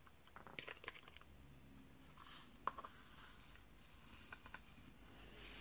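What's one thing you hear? Small plastic beads click softly as they are pressed onto a sticky surface.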